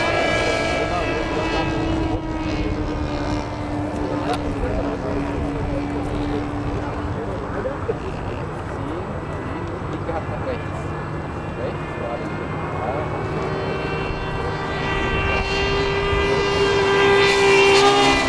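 A model plane's small engine buzzes overhead, fading off and growing louder as it swoops close.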